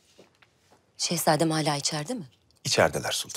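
A young woman asks a question calmly.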